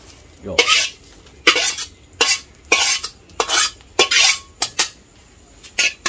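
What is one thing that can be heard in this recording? A metal ladle scrapes and knocks against a metal pot.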